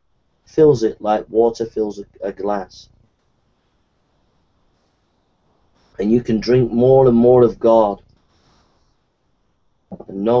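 A middle-aged man talks calmly into a microphone over an online call, pausing between phrases.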